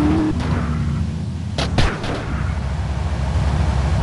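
A car crashes and tumbles over with a loud crunch.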